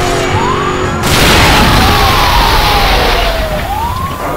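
A car crashes with a loud burst of noise.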